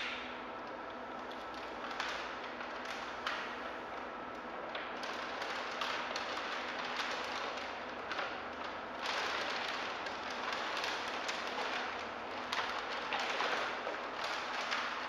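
A large plastic sheet crinkles and rustles as it is handled.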